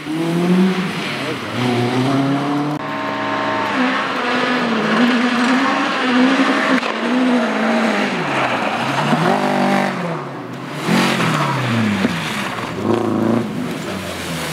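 A rally car engine revs hard and roars as it shifts through the gears.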